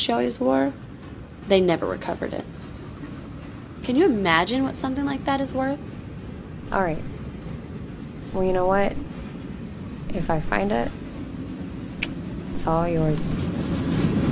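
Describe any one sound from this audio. A young woman speaks quietly and calmly, close by.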